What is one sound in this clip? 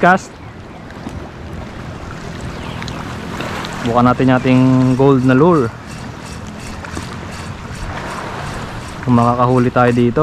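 Small waves lap gently against rocks close by.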